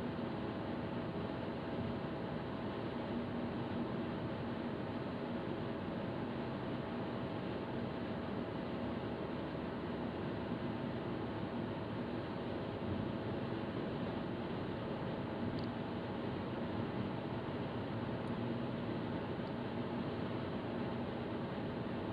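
Tyres roll on the road in a steady rumble.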